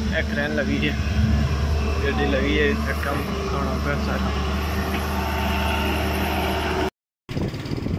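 An excavator engine rumbles nearby.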